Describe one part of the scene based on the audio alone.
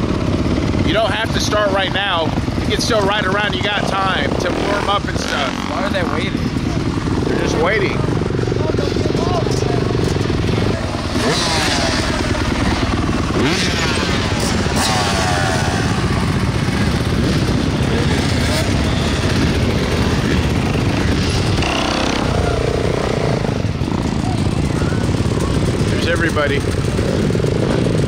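Dirt bike engines idle and rev nearby, outdoors.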